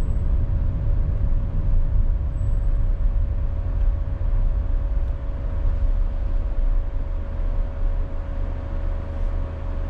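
A vehicle's engine hums low and steady while driving along a busy road.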